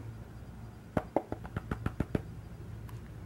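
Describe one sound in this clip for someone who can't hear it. A plastic pan taps and clicks against a tub.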